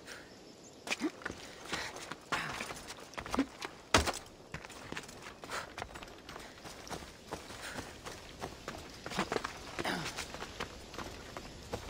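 Footsteps scrape and crunch on rock and dry grass.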